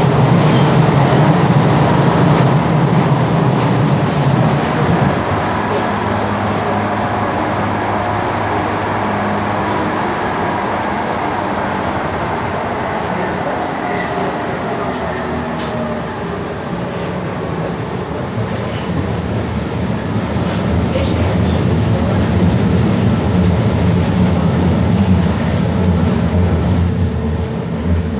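A subway train rumbles and rattles loudly along the tracks, heard from inside the carriage.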